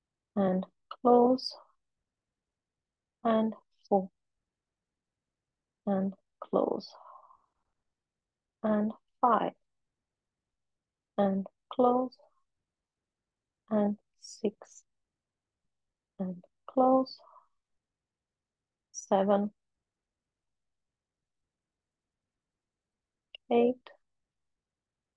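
A young woman speaks short calm phrases close to a microphone, with pauses between them.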